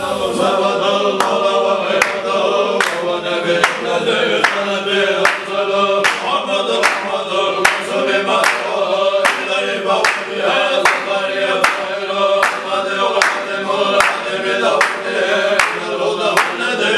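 Men clap their hands in a quick, steady beat.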